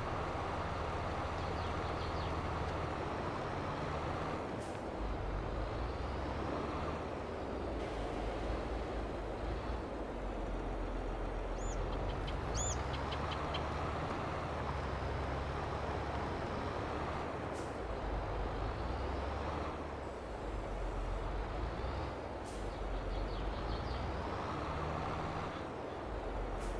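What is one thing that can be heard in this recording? Soil scrapes and hisses under a plough.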